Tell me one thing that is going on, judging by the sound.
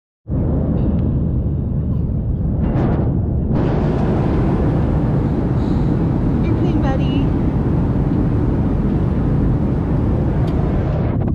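A steady low roar of jet engines fills an aircraft cabin.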